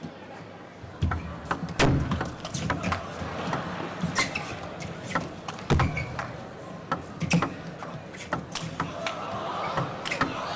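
A ping pong ball clicks sharply back and forth off paddles and a table.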